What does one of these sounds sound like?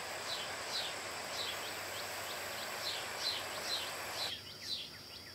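A shallow river rushes and gurgles over rocks.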